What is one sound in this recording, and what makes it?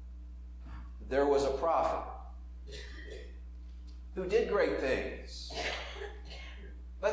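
An older man speaks calmly through a microphone, with pauses, in a large room with a slight echo.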